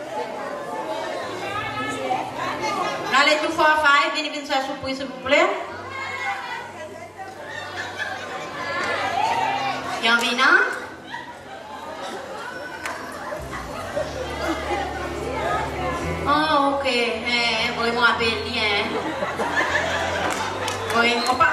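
A young woman speaks with animation through a microphone and loudspeakers.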